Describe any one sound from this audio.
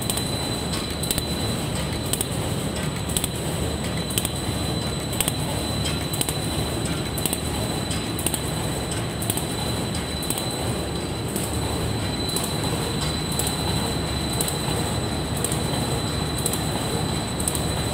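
A machine hums and rumbles steadily.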